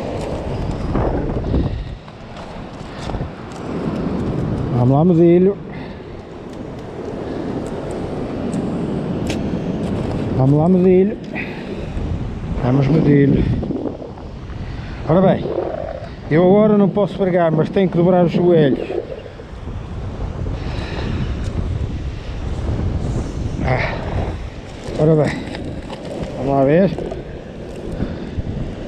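Shallow seawater washes and laps over rocks.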